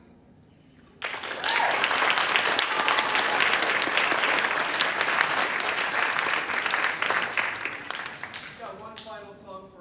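An audience applauds loudly in a large hall, then the clapping dies down.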